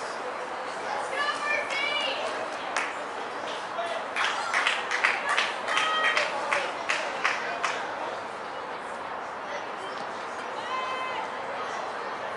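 Young women call out to each other from across an open outdoor field.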